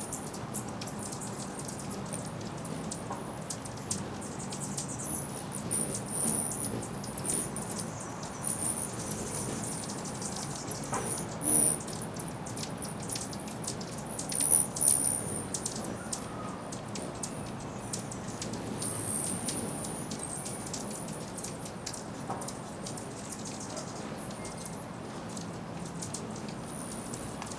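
Hummingbirds give high, squeaky chirps.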